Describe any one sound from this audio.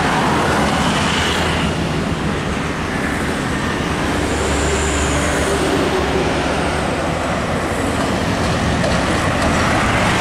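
Motorbikes buzz by close on the road.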